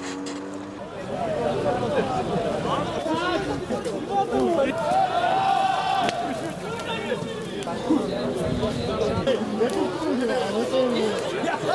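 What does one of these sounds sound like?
Men and women chatter nearby outdoors.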